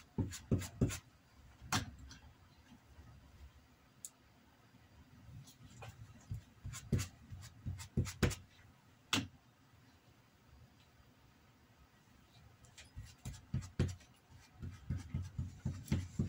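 A brush taps and scrapes against a small metal dish.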